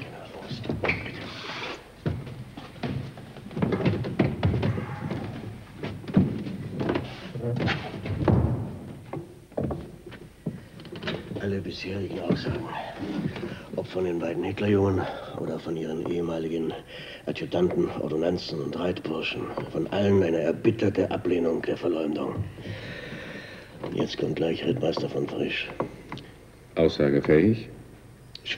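An older man answers calmly in a firm voice.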